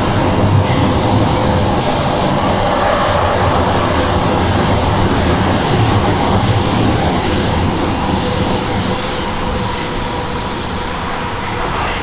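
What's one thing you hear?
A subway train's motor whines steadily as it speeds up.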